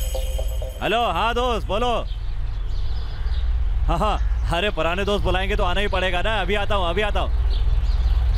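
A man talks on a phone with animation, close by.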